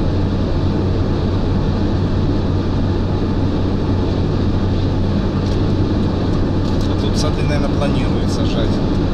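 A car engine hums steadily with tyre roar on a highway.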